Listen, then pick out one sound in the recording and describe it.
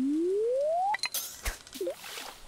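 A fishing line whooshes out in a cast.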